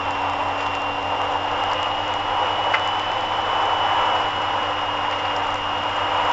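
Tyres roll steadily over a snowy road.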